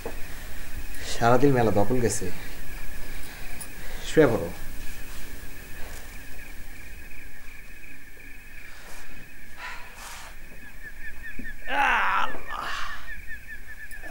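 A young man speaks softly nearby.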